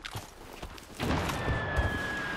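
Gunshots ring out in rapid bursts.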